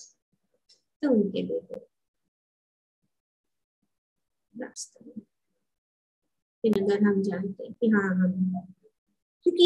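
An elderly woman speaks calmly through an online call, with long pauses.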